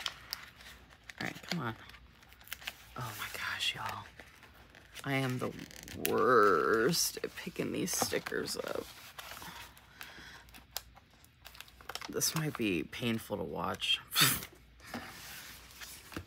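Paper rustles and crinkles as a sticker sheet is handled.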